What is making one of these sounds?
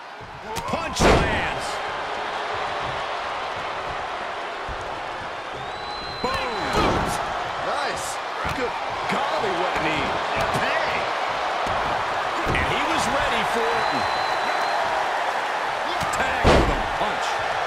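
Heavy bodies slam onto a wrestling mat with loud thuds.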